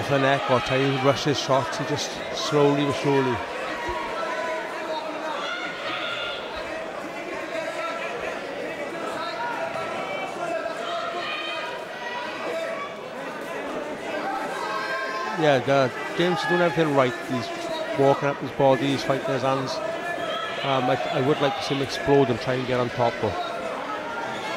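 Men shout loudly close by.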